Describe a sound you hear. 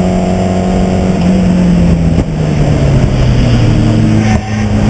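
A race car engine drops sharply in pitch as it slows and shifts down.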